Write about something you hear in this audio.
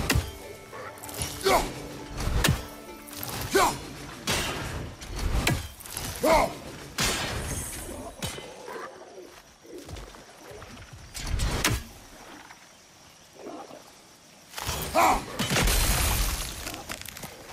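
A heavy axe whooshes through the air and strikes with loud impacts.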